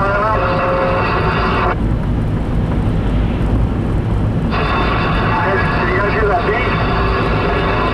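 Tyres hum steadily on a wet road from inside a moving car.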